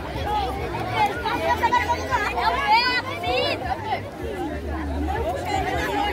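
A crowd of children and adults chatter and shout outdoors.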